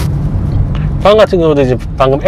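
A middle-aged woman speaks close by inside the car.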